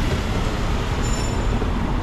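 A scooter rides past on the street.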